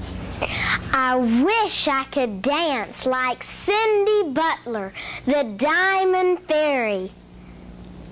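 A young girl sings through a microphone.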